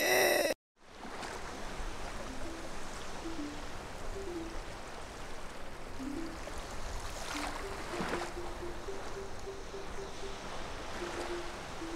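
Small waves wash gently onto a shore.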